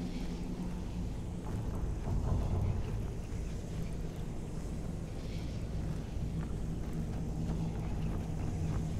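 A magic sword hums with a low, steady, crackling buzz.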